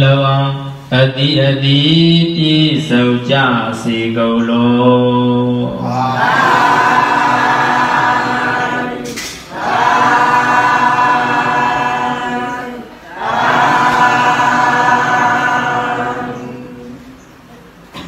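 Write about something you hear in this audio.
A man chants in long, drawn-out tones through a microphone.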